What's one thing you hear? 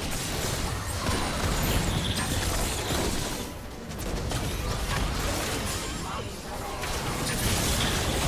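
Fantasy battle sound effects of spells bursting and weapons clashing play fast and dense.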